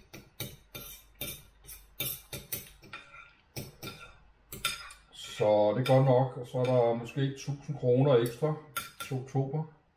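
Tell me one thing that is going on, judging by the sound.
Cutlery clinks and scrapes against a plate.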